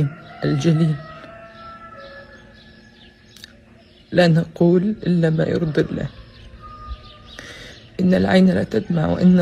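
A young woman speaks tearfully and slowly, close by.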